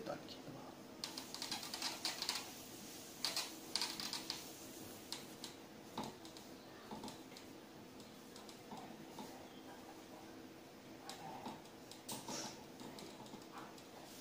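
A duster rubs and squeaks across a whiteboard.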